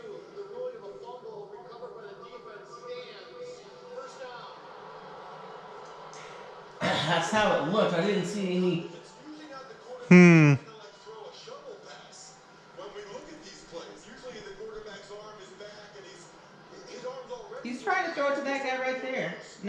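A television plays a sports broadcast with commentary.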